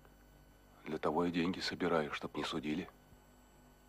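Another middle-aged man speaks in a low, earnest voice, close by.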